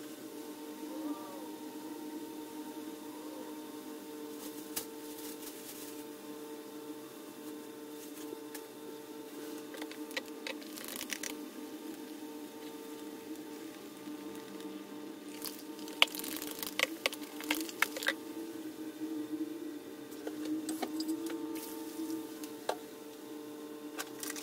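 Foam fizzes and crackles softly.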